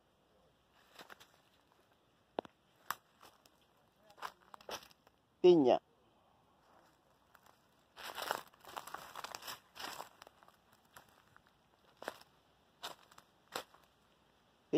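Dry leaves rustle and crunch underfoot.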